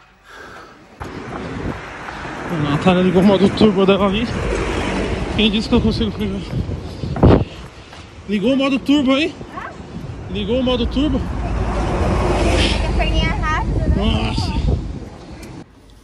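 A young woman talks breathlessly and with animation, close by.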